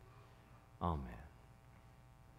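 A man speaks briefly into a microphone, then pauses.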